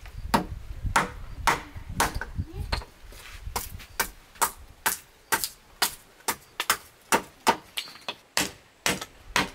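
A machete chops into wood with sharp, steady blows.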